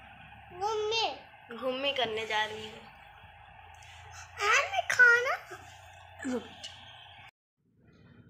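A toddler babbles and chatters close by.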